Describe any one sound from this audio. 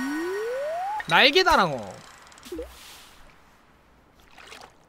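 A bobber plops into water.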